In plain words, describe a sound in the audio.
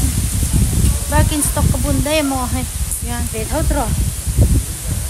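A young woman speaks cheerfully and close to the microphone.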